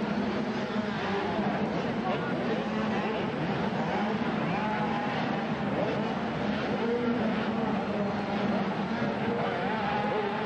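A crowd cheers in a large echoing arena.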